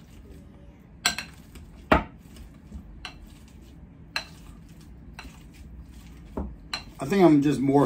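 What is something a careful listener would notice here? A fork clinks and scrapes against a glass bowl while mashing.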